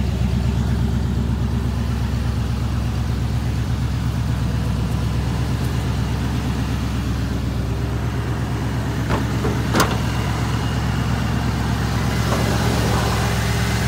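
An engine idles with a steady, low rumble close by.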